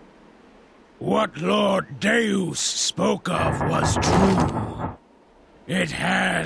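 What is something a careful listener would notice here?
An older man speaks in a deep, booming voice.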